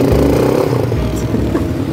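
Quad bike tyres spin and spray sand.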